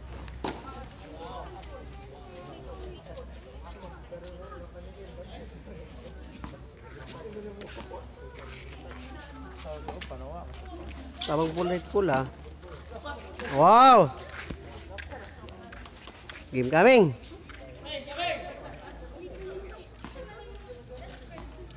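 A shuttlecock is struck with sharp, light racket hits.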